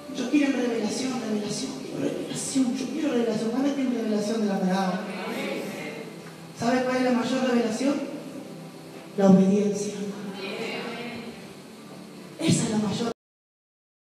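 A woman sings into a microphone over loudspeakers in a large echoing hall.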